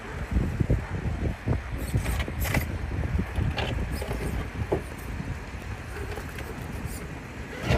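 Plastic tyres crunch and scrape on stone.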